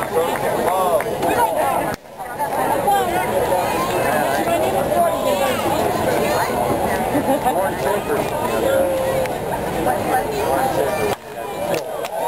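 A crowd of spectators chatters all around in an open-air stadium.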